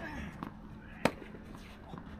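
A tennis racket strikes a ball with a sharp pop outdoors.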